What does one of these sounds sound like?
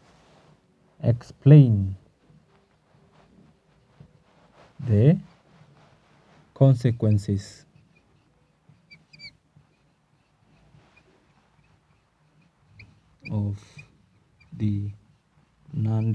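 A man speaks calmly in short phrases with pauses, close by.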